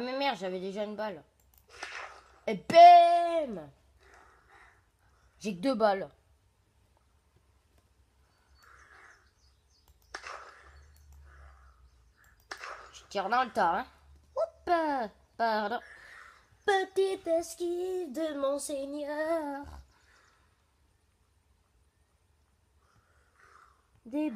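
A boy speaks with animation close by.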